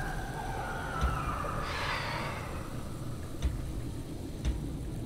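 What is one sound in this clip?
A soft menu click sounds as a selection moves.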